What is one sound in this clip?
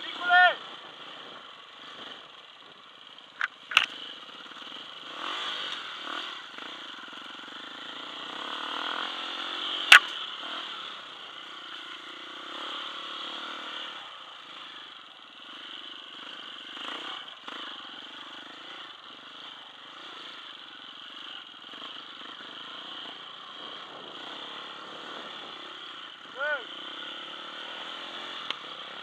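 A dirt bike engine drones steadily close by, revving up and down over rough ground.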